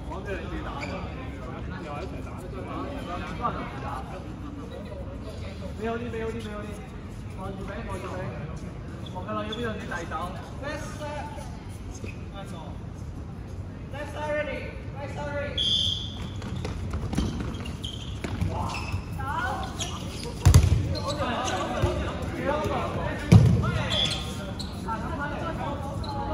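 Young people chatter and call out across a large echoing hall.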